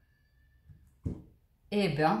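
A card is set down on a table with a soft tap.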